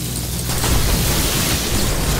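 Energy weapons fire and crackle in a fight.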